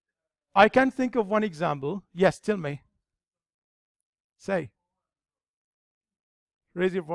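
A man lectures into a microphone, speaking calmly with pauses.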